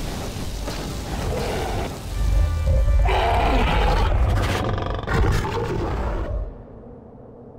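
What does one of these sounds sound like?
Heavy creatures clash and thud in a fight.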